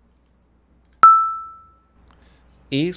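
A short, clear tone rings out through a computer speaker and quickly fades.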